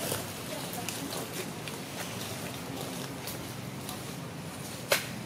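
Leaves rustle softly as a monkey shifts among the branches.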